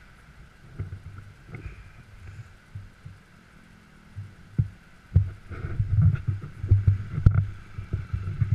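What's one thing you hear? A bicycle's tyres rumble and crunch over a rough, rocky trail.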